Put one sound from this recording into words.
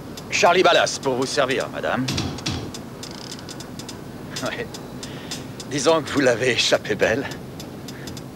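A man speaks quietly.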